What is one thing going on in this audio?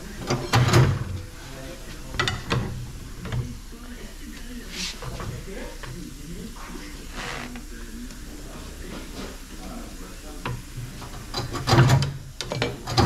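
Metal tyre levers clank and scrape against a wheel rim.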